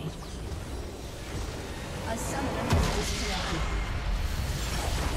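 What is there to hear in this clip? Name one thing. Video game spell effects whoosh and crackle during a fight.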